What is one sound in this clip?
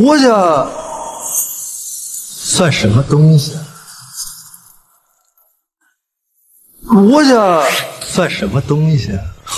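A young man speaks with animation, close by.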